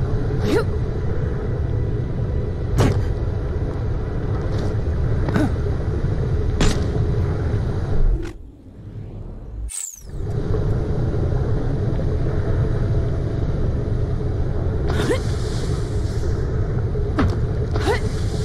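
A deep, steady rumble of bubbling lava fills the air.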